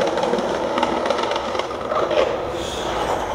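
Skateboard wheels roll and clatter on pavement.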